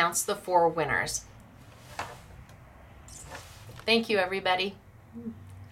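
A middle-aged woman speaks warmly and with animation, close to a microphone.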